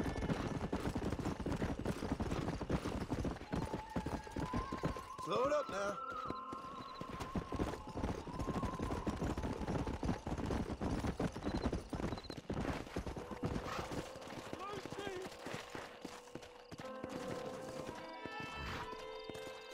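Horse hooves clop steadily on a dirt path.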